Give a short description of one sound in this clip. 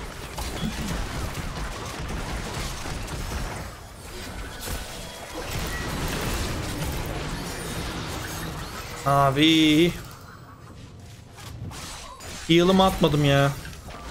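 Video game spells and hits crackle and whoosh.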